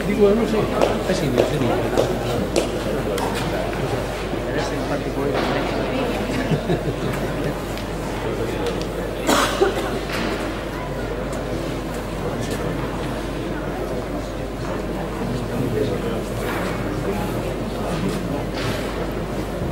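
Tennis balls are struck by rackets with sharp pops.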